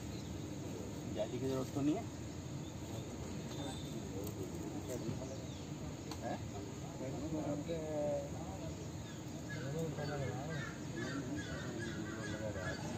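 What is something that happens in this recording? Men talk nearby outdoors in a casual way.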